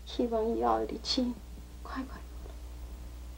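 A woman speaks softly and tenderly nearby.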